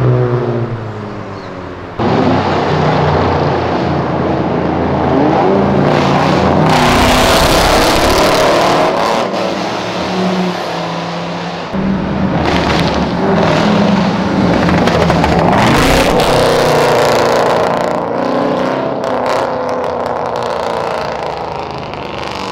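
Loud car engines rev and roar as cars accelerate past.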